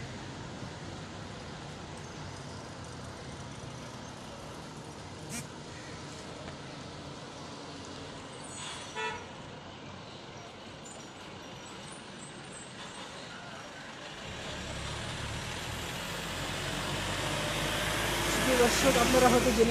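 Traffic hums quietly outdoors.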